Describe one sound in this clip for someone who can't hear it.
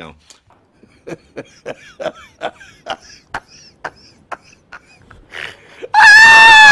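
A man laughs loudly and heartily.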